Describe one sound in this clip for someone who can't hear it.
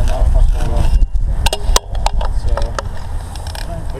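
A metal tool clicks against a bike's parts.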